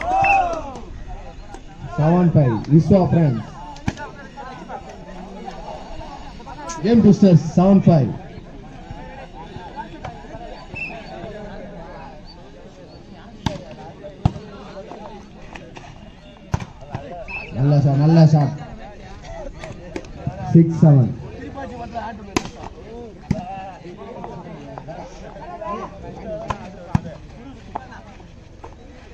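A crowd of young men chatters in the background.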